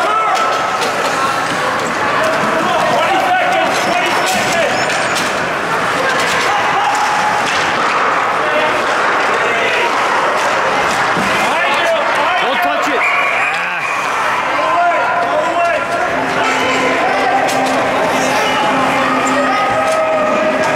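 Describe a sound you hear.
Spectators chatter and shout in a large echoing rink.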